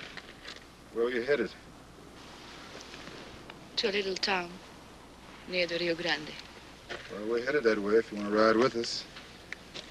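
A woman speaks in short, tense phrases close by.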